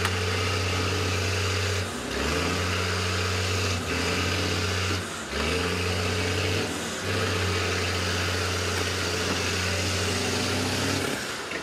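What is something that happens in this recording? Metal scrapes and crunches as a bus is pushed across mud.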